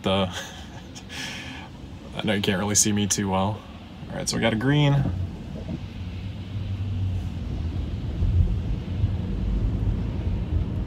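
Tyres hum on a wet road inside a moving car.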